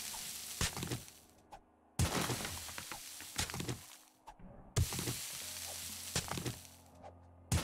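A stone axe strikes rock with sharp, repeated knocks.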